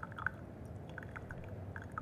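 Tea trickles into a glass pitcher.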